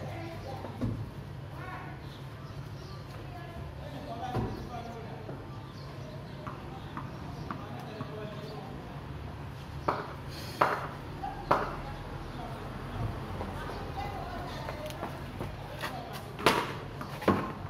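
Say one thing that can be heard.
A bat strikes a tennis ball with a sharp knock.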